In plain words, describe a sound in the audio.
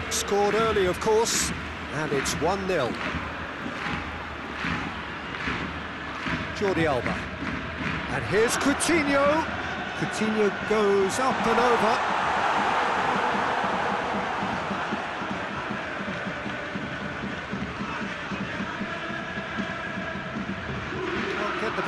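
A stadium crowd roars and murmurs throughout.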